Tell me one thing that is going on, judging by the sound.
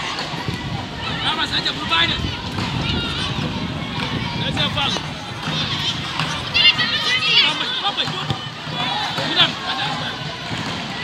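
Children shout and call out from a distance outdoors.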